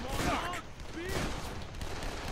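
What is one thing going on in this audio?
A fiery blast bursts with a roar.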